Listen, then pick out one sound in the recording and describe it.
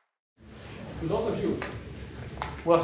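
A man speaks calmly to an audience through a microphone.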